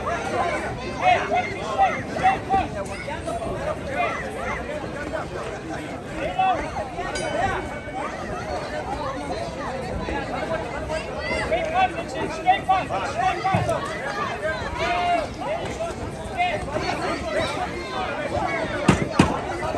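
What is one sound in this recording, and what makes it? A crowd of men and women chatters and calls out nearby outdoors.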